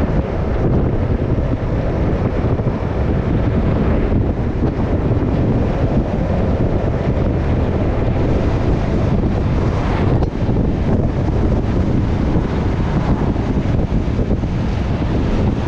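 Wind rushes loudly past a vehicle moving at speed.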